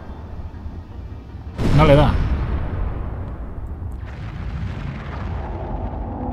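A fire roars and crackles with a deep, steady rumble.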